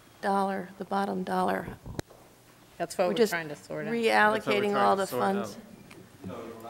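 A woman speaks into a microphone in a large room.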